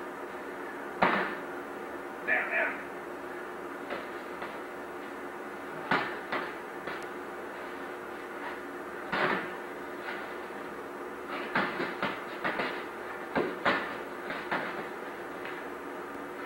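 Padded sticks thud against each other and against bodies in quick bursts, in a large echoing hall.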